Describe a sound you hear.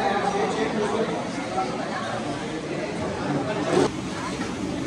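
Several men and women chat and talk over each other nearby.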